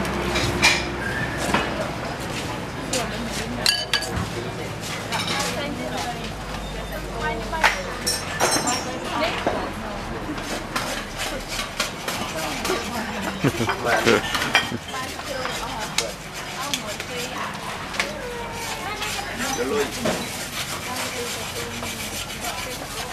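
A busy crowd chatters all around.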